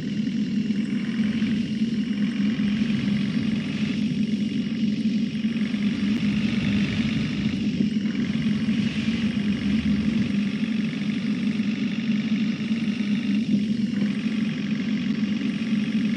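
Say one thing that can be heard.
A bus engine hums steadily as it speeds up along a road.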